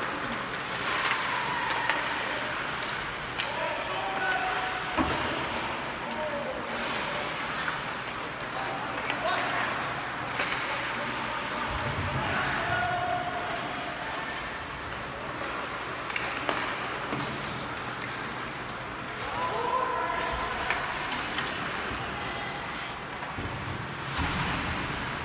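Hockey sticks clack sharply against the puck in a large echoing arena.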